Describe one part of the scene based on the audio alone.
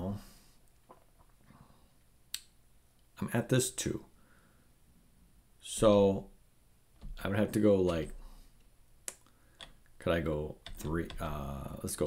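A man talks calmly and thoughtfully into a close microphone, pausing often.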